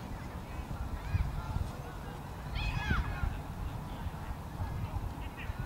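Children's voices chatter faintly in the distance.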